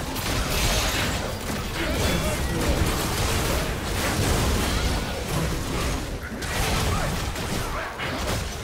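Spell effects crackle and burst in a fast fight.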